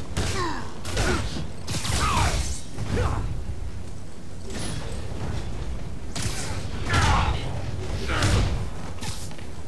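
Heavy blows and crashes thud in a fight.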